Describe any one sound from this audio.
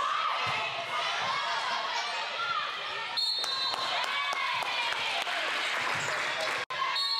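Young women shout and call out to one another in a large echoing hall.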